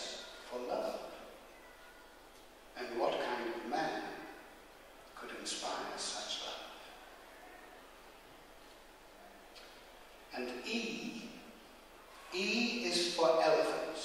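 An elderly man speaks into a microphone in bursts, with pauses, in a hall with some echo.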